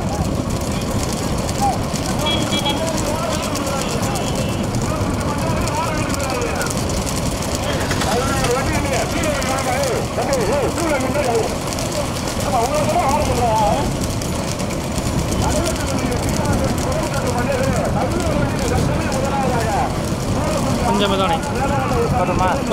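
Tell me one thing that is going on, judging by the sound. Men shout loudly at the bulls as they race.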